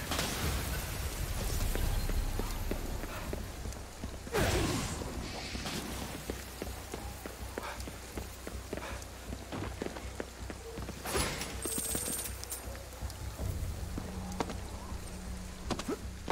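Magic blasts crackle and zap in quick bursts.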